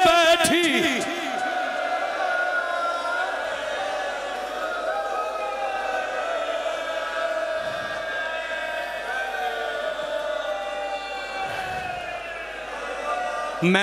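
A man chants in a loud, impassioned voice through a microphone and loudspeakers in an echoing hall.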